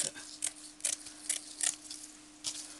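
Scissors snip through coarse fabric.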